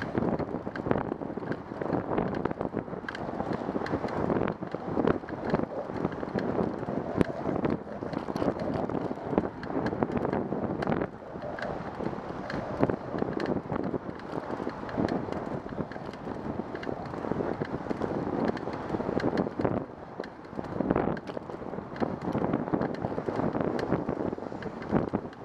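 Bicycle tyres roll steadily over smooth pavement.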